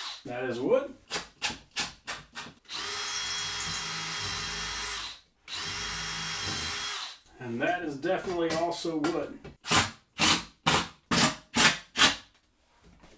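A drill gives short bursts as it drives screws.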